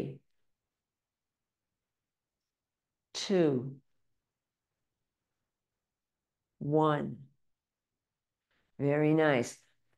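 An elderly woman speaks calmly in short phrases through a microphone, with pauses between them.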